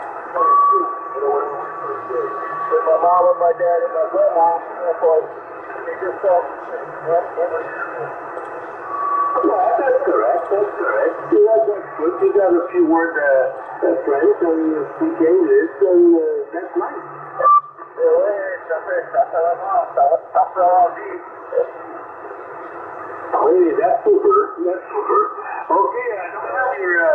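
A radio receiver plays crackly, muffled transmissions through its small loudspeaker.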